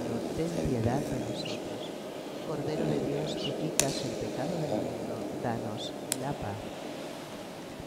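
An elderly man speaks calmly into a microphone in an echoing room.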